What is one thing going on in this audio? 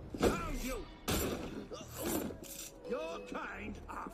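A blade slashes during a fight.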